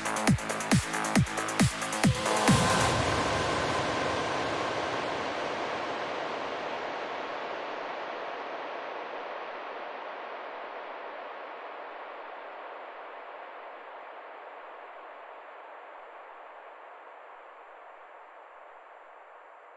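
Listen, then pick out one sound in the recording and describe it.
Electronic dance music plays loudly and slowly fades.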